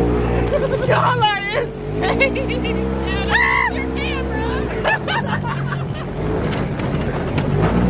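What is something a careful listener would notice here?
A young woman shouts and laughs excitedly close by.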